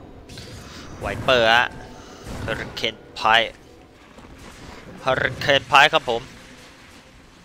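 Magic spells whoosh and crackle in a game fight.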